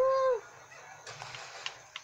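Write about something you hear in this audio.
An explosion booms from a television speaker.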